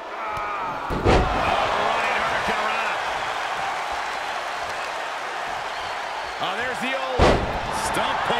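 A body slams heavily onto the ring mat.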